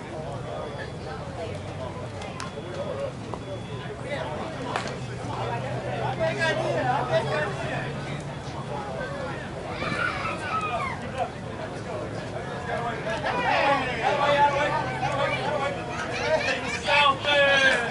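Hands slap together as players high-five in a line.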